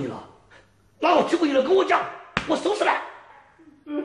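A middle-aged man shouts angrily nearby.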